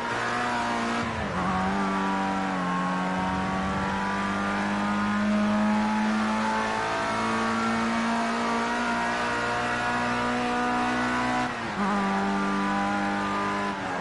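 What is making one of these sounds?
A racing car engine roars steadily at high revs, dropping briefly with each gear change.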